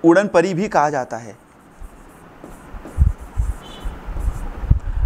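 A marker taps and scrapes on a writing board.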